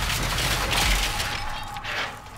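A wooden barricade crashes and breaks apart.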